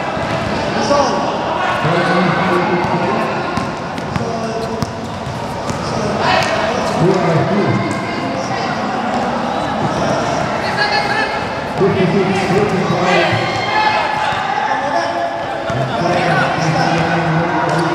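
Voices of a crowd of players and onlookers echo through a large hall.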